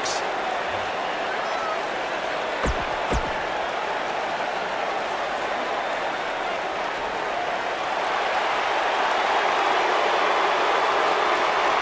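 A large crowd cheers and roars steadily in a big echoing arena, growing louder toward the end.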